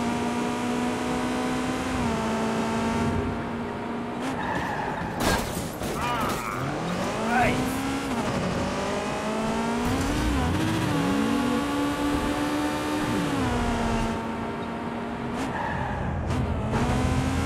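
A sports car engine hums steadily and rises and falls in pitch as the car speeds up and slows down.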